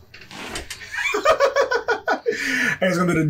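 A young man laughs loudly close to a microphone.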